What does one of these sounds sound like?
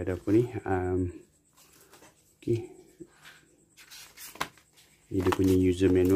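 Paper rustles as a booklet is flipped open.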